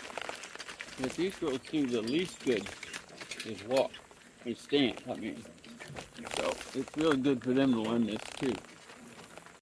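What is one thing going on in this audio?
An elderly man talks calmly close by.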